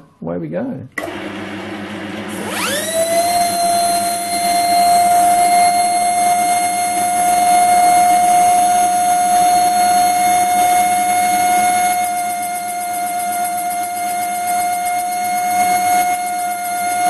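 A lathe motor starts, whirs up to speed and runs with a steady high whine.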